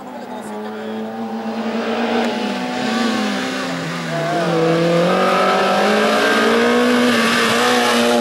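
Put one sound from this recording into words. Another racing car's engine roars loudly as the car speeds up toward and past the listener.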